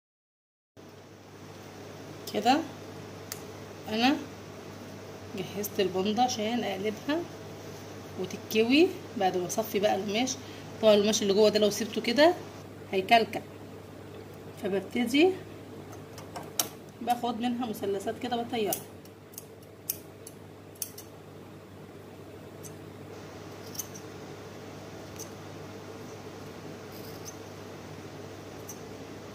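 A sewing machine runs and stitches.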